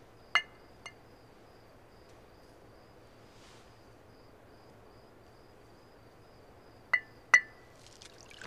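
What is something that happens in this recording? Porcelain cups clink against each other.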